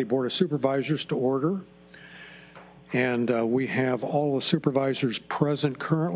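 A man speaks calmly through a microphone.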